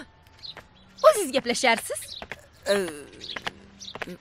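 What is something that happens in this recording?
A middle-aged woman speaks with feeling, close by.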